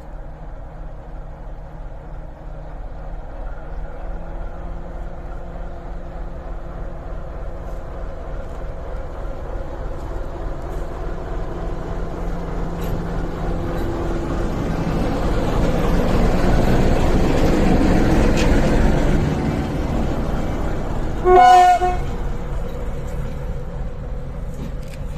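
A diesel locomotive engine rumbles as it approaches, grows louder while passing close by, then eases off.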